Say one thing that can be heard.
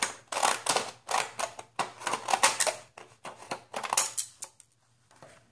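Scissors snip through stiff paper in quick, repeated crunching cuts.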